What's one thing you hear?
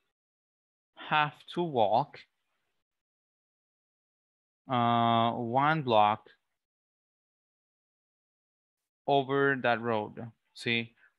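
A man speaks slowly over an online call, pausing between phrases.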